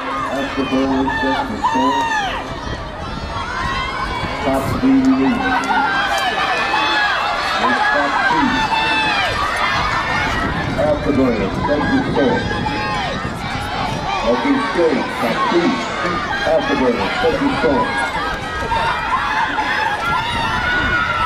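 A large crowd chatters, shouts and cheers across an open outdoor stadium.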